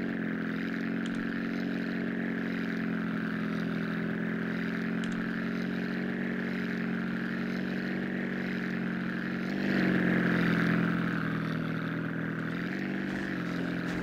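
A propeller plane engine drones steadily, rising in pitch now and then.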